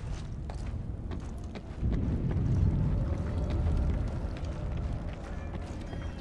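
Footsteps run on stone floors.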